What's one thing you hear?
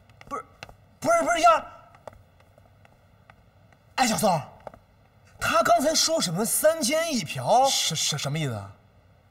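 A man speaks with animation close by, exclaiming and questioning.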